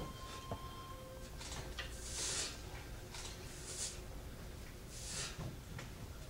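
Feet shuffle and stamp on a hard floor.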